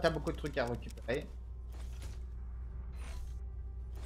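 A metal locker door clanks shut.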